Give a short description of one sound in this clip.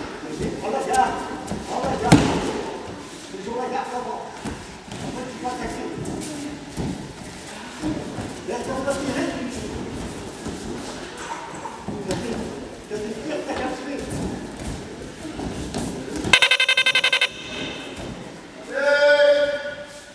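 Children talk and call out in an echoing hall.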